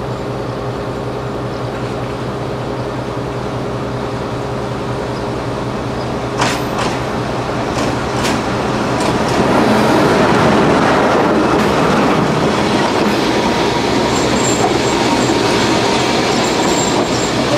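A diesel locomotive engine rumbles steadily and grows louder as it approaches.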